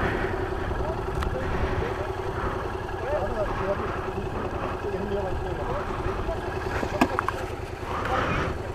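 A motorcycle engine idles nearby with a steady throb.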